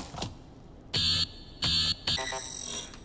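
An electronic drink machine beeps twice.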